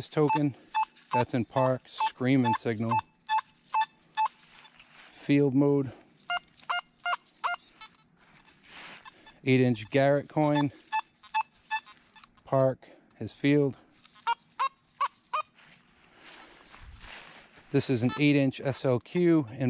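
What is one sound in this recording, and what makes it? A metal detector beeps in short, quick tones.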